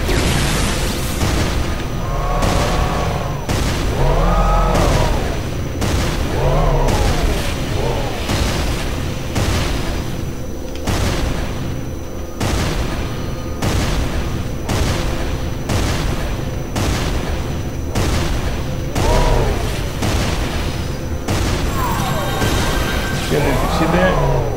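A heavy gun fires shots in a steady, rapid rhythm.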